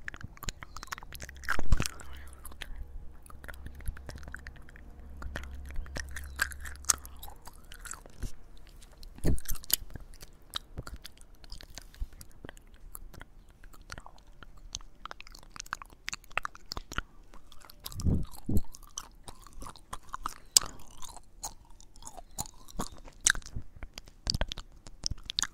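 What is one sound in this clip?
Fingers rub and tap against a handheld recorder close to the microphone.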